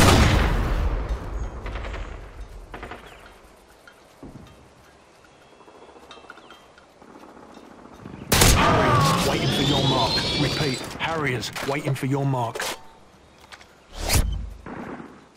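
Gunshots ring out sharply.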